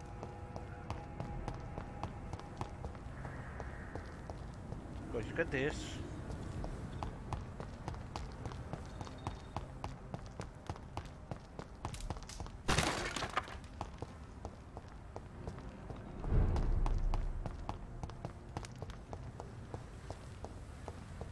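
Footsteps run on cobblestones.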